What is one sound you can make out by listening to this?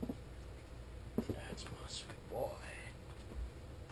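A cat jumps and lands on a carpet.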